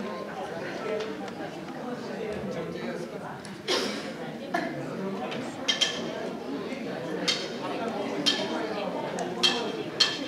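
A live band plays music through loudspeakers in a large echoing hall.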